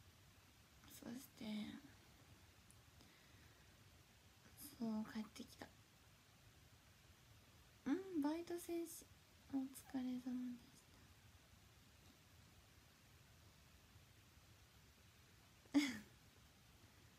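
A young woman speaks softly and casually, close to a microphone, in short bursts between pauses.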